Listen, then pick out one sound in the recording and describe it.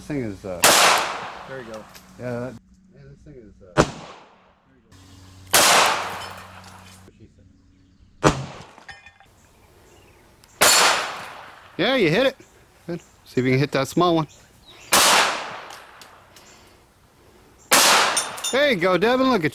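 A pistol fires loud shots that echo outdoors.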